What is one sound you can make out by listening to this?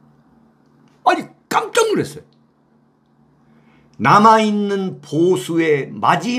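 A middle-aged man speaks with animation into a close microphone, with pauses.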